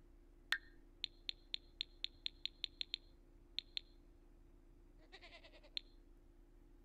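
Soft game menu clicks tick in a quick run.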